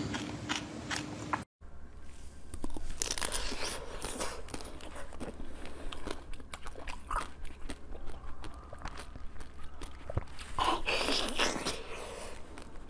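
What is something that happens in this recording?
A young woman bites into crunchy ice close to a microphone.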